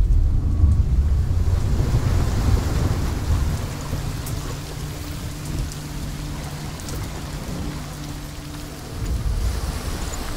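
Rain pours down steadily outdoors.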